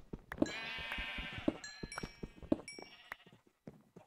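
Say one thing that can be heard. A block breaks and drops with a soft pop.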